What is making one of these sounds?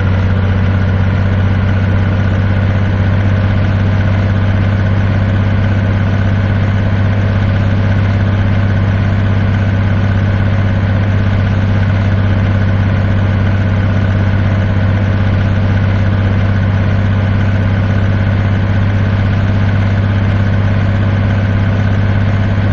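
A heavy truck engine drones steadily at cruising speed.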